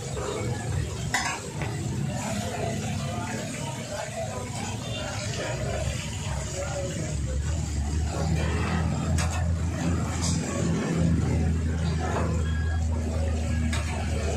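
Fish sizzles and crackles in hot oil.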